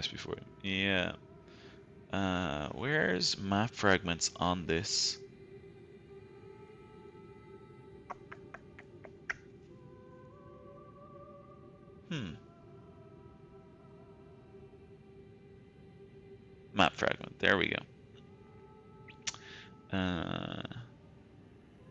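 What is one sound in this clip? A man talks casually and close to a microphone, in short bursts.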